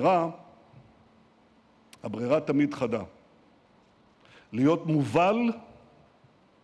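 An older man speaks calmly into a microphone, heard through a loudspeaker in a large room.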